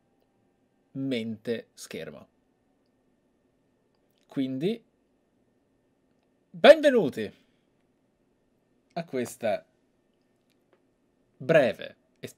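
A man talks animatedly into a close microphone in short bursts.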